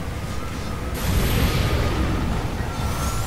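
Flames roar loudly in a sudden burst.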